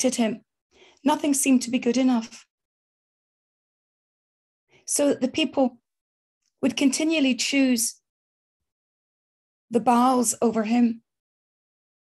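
A middle-aged woman speaks calmly into a microphone, heard over an online call, with pauses between phrases.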